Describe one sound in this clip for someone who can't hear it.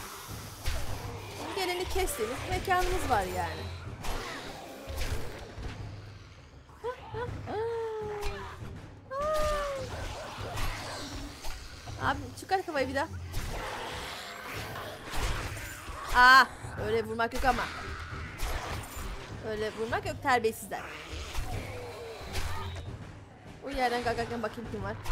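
Zombies groan and snarl close by.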